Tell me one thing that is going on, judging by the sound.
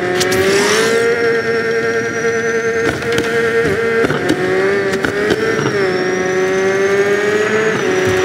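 A motorbike engine hums steadily, its pitch rising and falling as the bike speeds up and slows.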